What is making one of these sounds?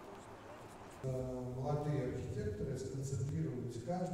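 A man speaks steadily into a microphone in a large room.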